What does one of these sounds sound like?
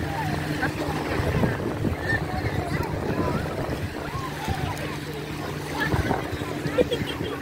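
A crowd of people chatters and calls out on an open beach.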